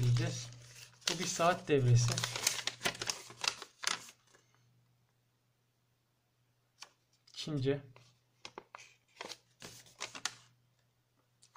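A sheet of paper rustles and crinkles as it is unfolded and handled.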